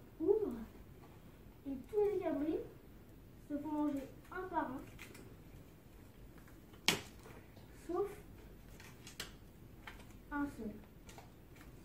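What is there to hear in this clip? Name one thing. A young boy speaks calmly and close by in short phrases.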